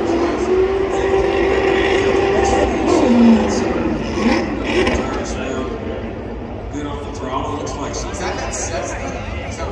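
Tyres squeal as a car spins in circles.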